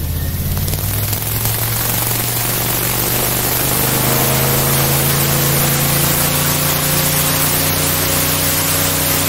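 Water sprays and hisses behind a fast-moving boat.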